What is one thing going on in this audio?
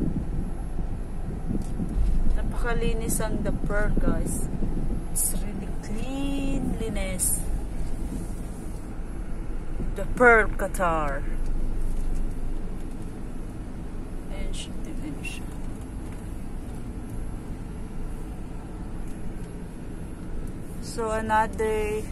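A car drives along a road with a steady low rumble, heard from inside.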